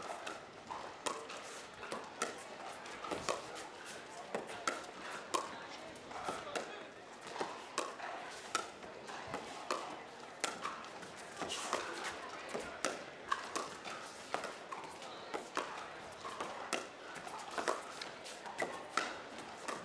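Paddles hit a plastic ball in a quick back-and-forth rally, each hit a sharp pop.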